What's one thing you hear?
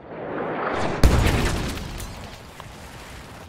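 A loud explosion booms nearby and rumbles away.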